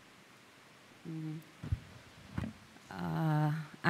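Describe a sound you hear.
A young woman speaks calmly through a microphone.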